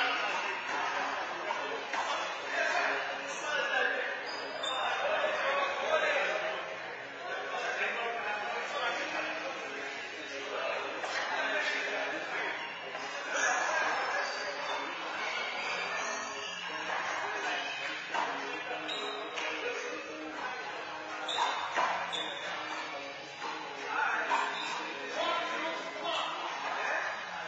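Men talk and call out in an echoing court.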